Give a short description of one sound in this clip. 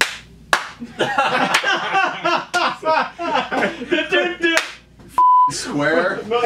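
Young men laugh heartily.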